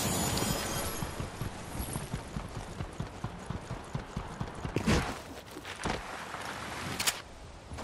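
Quick footsteps clank on metal stairs.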